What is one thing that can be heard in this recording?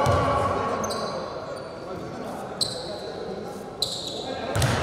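A basketball bounces on a wooden floor.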